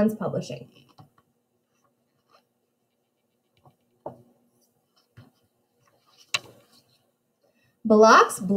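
A paper page turns with a soft rustle.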